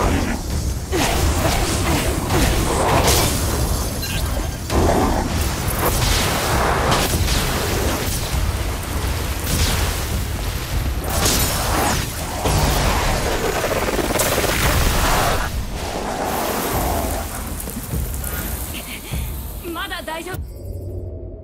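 Magical energy blasts crackle and roar in rapid bursts.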